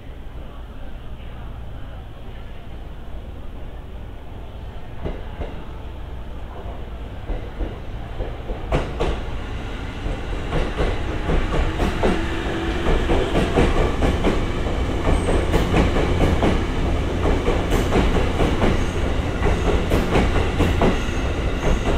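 A train rolls into the station with a low rumble that grows louder.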